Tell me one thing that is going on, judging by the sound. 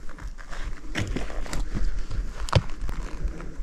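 A bow knocks softly against gear.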